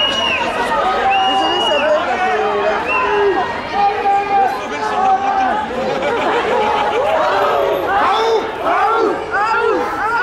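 Many voices of men and women murmur and talk nearby.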